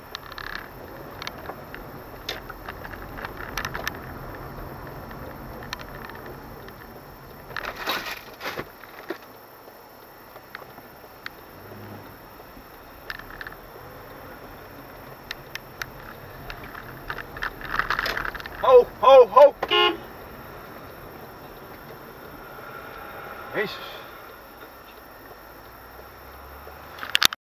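A car engine hums steadily from inside the cabin while driving.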